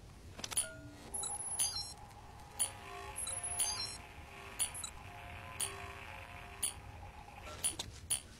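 An electronic scanner beeps and chirps in short bursts.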